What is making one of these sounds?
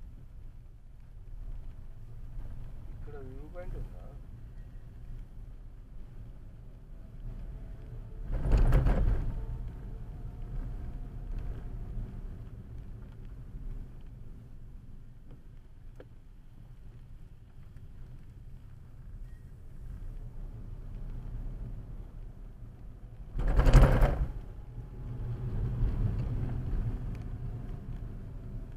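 A car engine hums steadily from inside.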